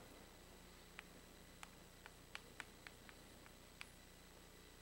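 Chalk taps and clicks on a board.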